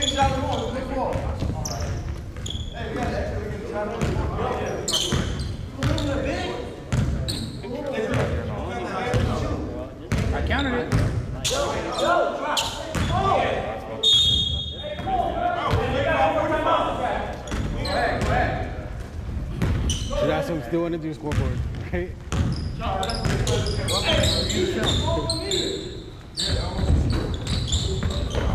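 Young men shout and call to each other across the court.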